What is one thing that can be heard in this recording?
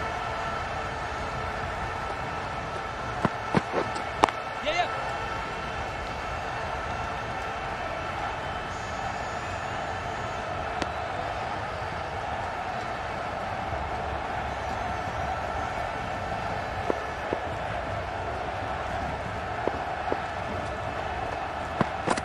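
A stadium crowd murmurs steadily in the background.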